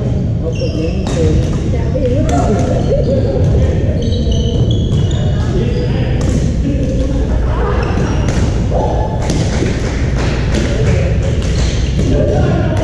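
Paddles strike a plastic ball with sharp pops in a large echoing hall.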